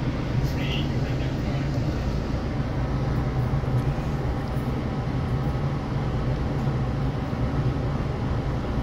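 An electric multiple-unit train rolls along the tracks, heard from inside the carriage.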